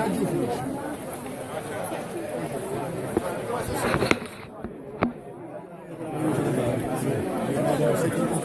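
A large crowd of men and women chatters and calls out nearby, outdoors.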